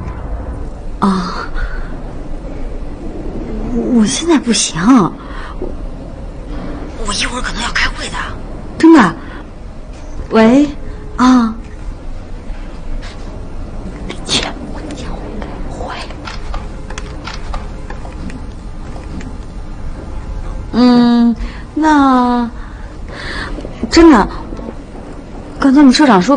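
A young woman speaks on a phone, upset and pleading.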